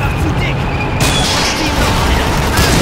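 An explosion booms as a shell hits a tank.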